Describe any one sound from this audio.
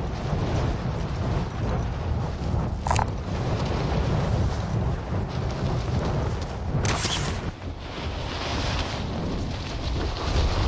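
Wind rushes loudly past during a parachute descent.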